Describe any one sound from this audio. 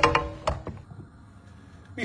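Water bubbles at a rolling boil.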